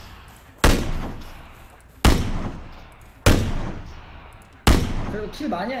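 Loud rifle shots crack one after another, each ringing briefly.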